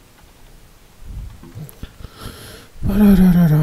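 Keys clatter on an old computer keyboard.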